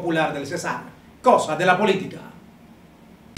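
A man speaks clearly and calmly into a microphone.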